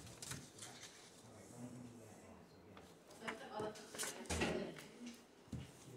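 Paper and a wallet rustle in hands.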